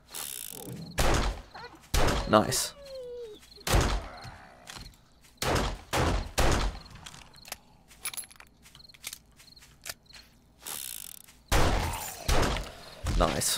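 Loud gunshots boom one after another, each with a ringing tail.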